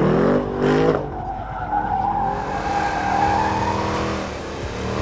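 Tyres squeal on tarmac during a hard turn.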